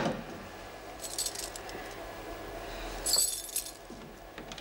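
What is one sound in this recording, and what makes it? Keys jingle on a ring.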